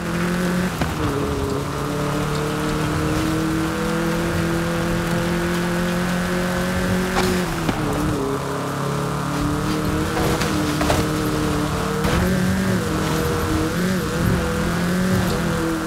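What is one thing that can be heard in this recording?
Tyres crunch and rumble over a rough dirt track.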